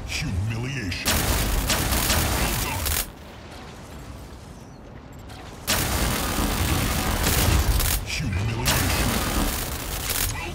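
Electric zaps crackle from a lightning weapon.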